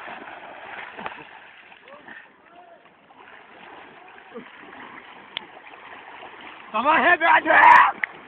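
Water splashes gently as boys wade.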